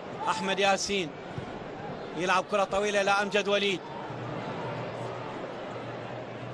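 A large crowd murmurs in a stadium.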